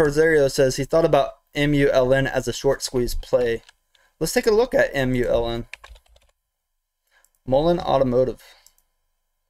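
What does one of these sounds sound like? A man speaks calmly into a headset microphone, close up, in short bursts with pauses.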